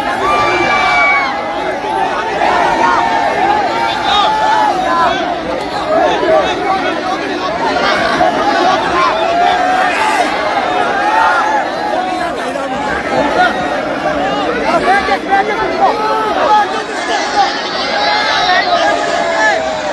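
A large crowd of young men cheers and shouts loudly outdoors.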